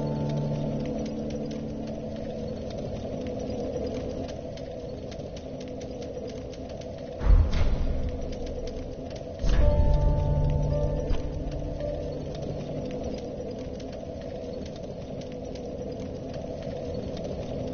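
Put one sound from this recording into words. Soft menu clicks tick quickly as selections change.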